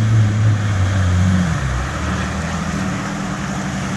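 Tyres splash through shallow water.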